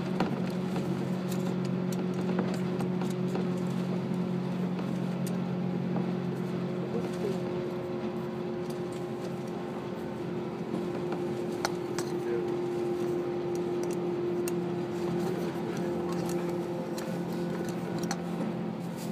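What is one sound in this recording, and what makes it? A train rumbles steadily along the tracks, with a low hum.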